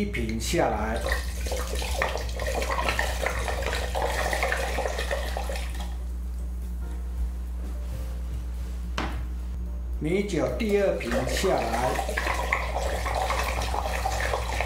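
Liquid pours from a bottle into a pot of water, splashing and bubbling.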